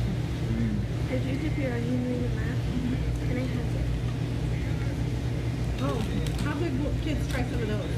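A woman talks casually nearby.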